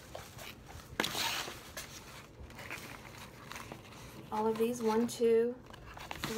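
Cardboard and plastic packaging rustle and crinkle as they are handled close by.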